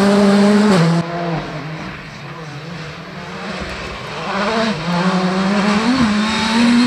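A rally car engine roars and revs hard, shifting gears as the car approaches.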